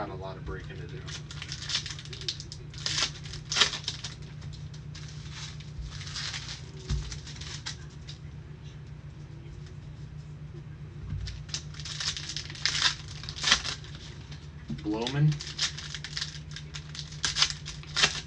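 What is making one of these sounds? Foil wrappers crinkle and tear as hands open card packs.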